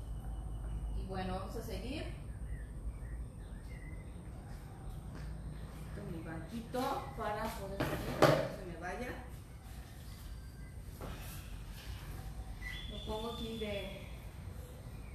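A young woman speaks in short bursts close by.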